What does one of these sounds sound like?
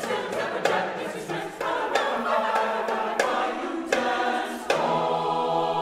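A hand drum is tapped in quick, sharp beats.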